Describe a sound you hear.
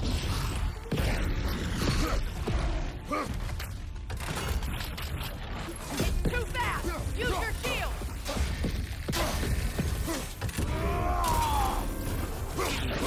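Heavy weapon blows strike with sharp thuds.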